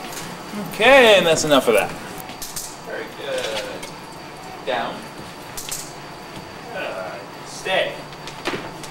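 A man gives short commands to a dog close by.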